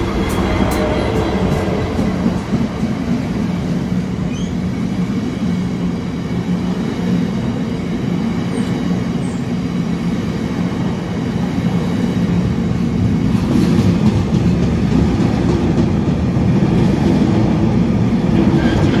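Freight wagons rumble and clatter past on the rails.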